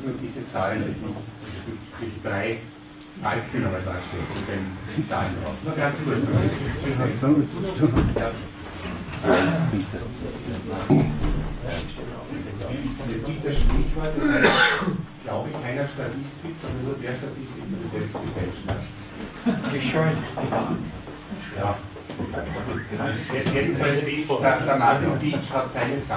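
Several men and women talk over one another in a room with some echo.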